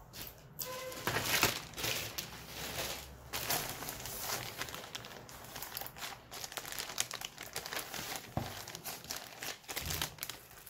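A plastic bag crinkles and rustles loudly.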